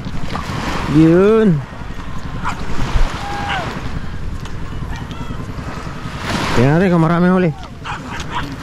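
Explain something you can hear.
A man shouts loudly across open ground.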